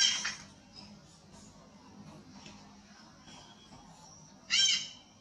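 A baby monkey squeals shrilly.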